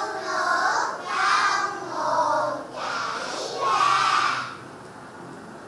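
Young children recite aloud together in chorus.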